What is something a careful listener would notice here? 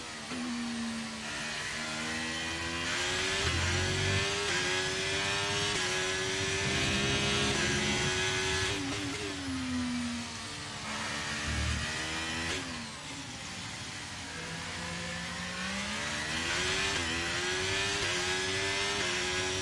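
A racing car engine screams loudly, rising in pitch through the gears and dropping when braking.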